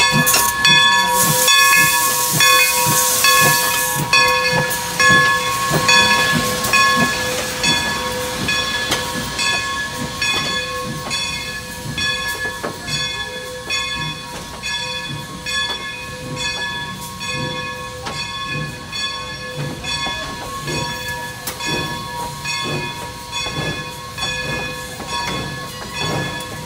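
Train wheels clatter rhythmically over the rails as the train rolls past.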